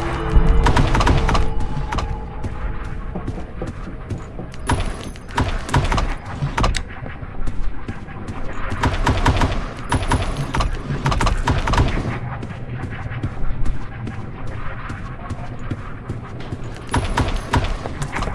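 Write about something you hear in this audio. Wooden drawers slide open with soft knocks.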